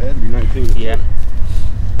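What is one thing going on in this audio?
Footsteps crunch on dry grass.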